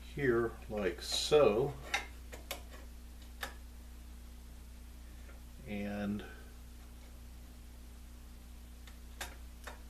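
Metal casing clicks and taps as it is handled.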